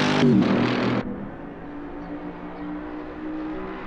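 A sports car engine hums faintly in the distance.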